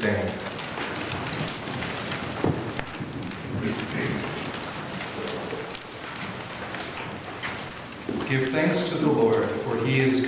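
A young man reads aloud calmly in a room with a slight echo.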